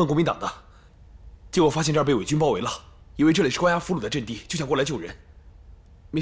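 A young man speaks with urgency, close by.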